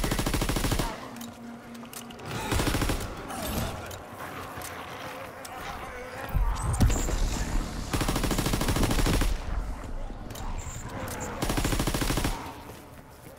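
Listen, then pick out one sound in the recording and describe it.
Gunshots fire in loud, rapid bursts.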